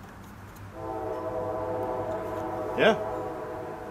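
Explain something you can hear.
A metal tin lid clicks as it is handled.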